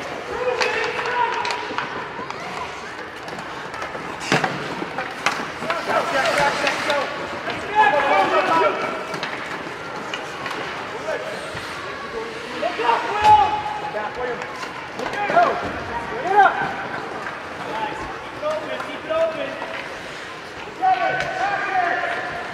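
Hockey sticks clack against the puck and ice.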